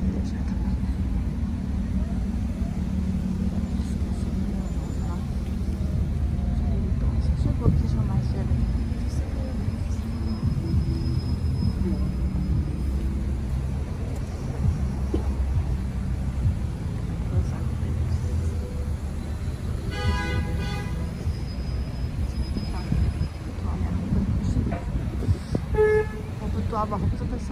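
Car engines idle and rumble steadily in nearby traffic outdoors.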